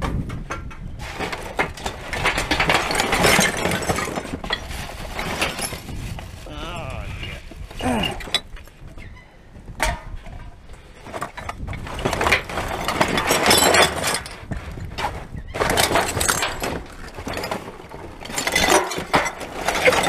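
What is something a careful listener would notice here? Cans and plastic packaging rustle and clatter inside a bin.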